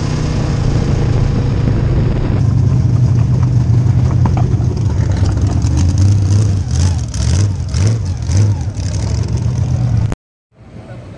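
A race car engine roars loudly and revs up and down.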